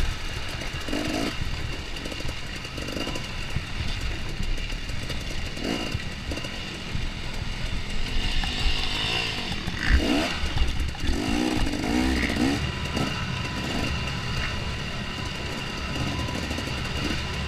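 Tyres crunch and bump over a rough dirt trail.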